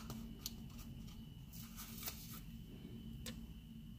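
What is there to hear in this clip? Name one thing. A sticker peels off a backing sheet.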